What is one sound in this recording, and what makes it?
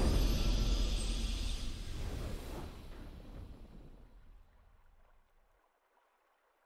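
A triumphant video game victory fanfare plays and slowly fades away.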